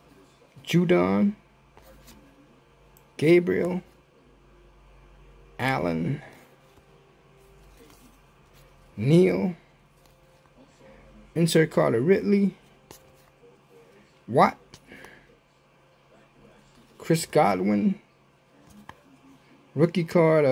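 Trading cards softly slide and rustle in a hand.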